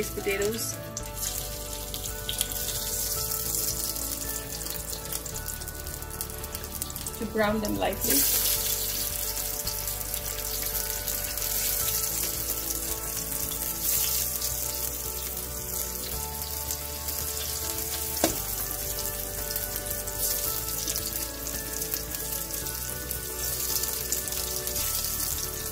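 Hot oil sizzles and crackles in a pan, growing louder partway through.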